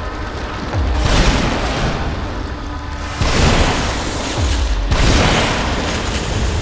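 Loud gunshots boom one after another in an echoing space.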